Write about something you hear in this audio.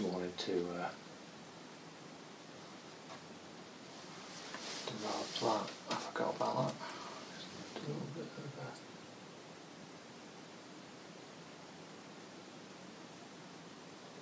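A paintbrush scrapes softly on canvas.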